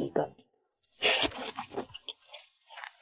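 A young woman slurps food close to a microphone.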